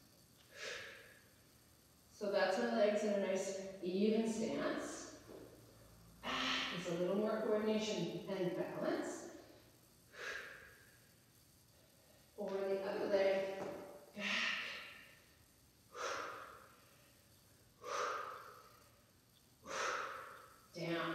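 A woman breathes out sharply with each lift.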